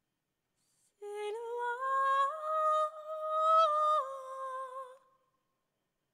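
A young woman sings a long, rising and falling note into a microphone.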